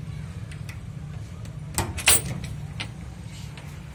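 A metal chain clinks against a wooden frame.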